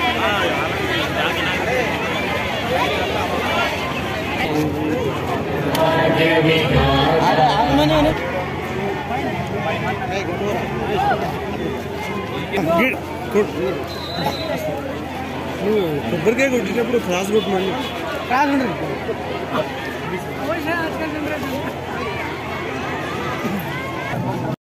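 A crowd of men talk and murmur outdoors.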